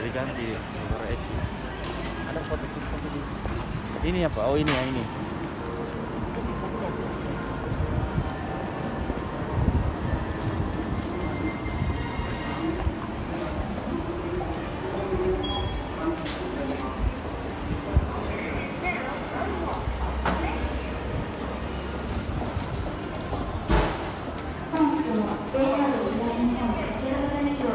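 Footsteps tap on a hard pavement.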